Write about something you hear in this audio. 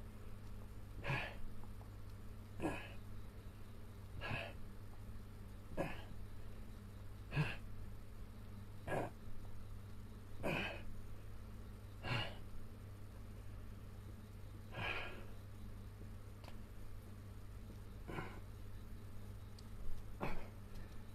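An elderly man grunts with effort at regular intervals, close by.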